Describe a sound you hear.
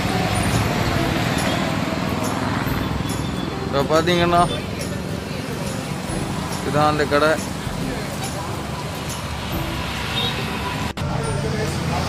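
Traffic rumbles steadily along a busy road outdoors.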